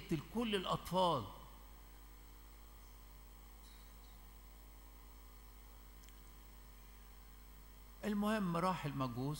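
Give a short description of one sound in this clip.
An elderly man chants slowly into a microphone, heard through a loudspeaker in a large echoing hall.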